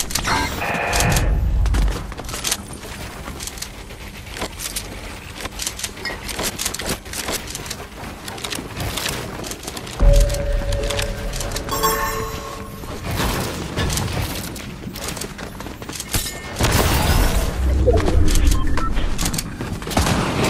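Footsteps patter rapidly.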